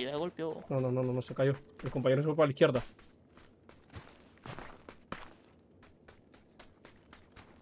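Footsteps crunch quickly over grass and dirt.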